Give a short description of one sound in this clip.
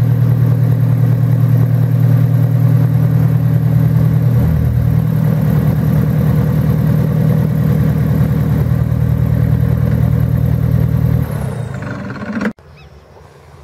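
A twin-engine propeller plane idles nearby with a loud, steady droning hum.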